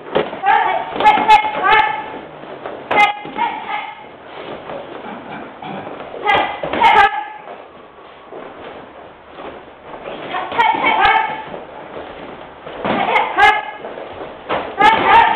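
Children shout sharply while sparring.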